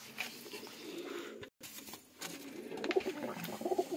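A pigeon flutters its wings.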